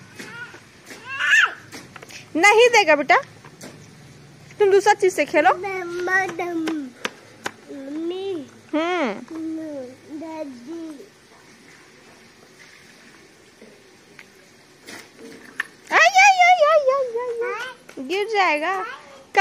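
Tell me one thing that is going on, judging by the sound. Small children babble and squeal close by.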